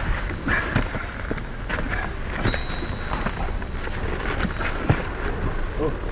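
Men grunt while fighting.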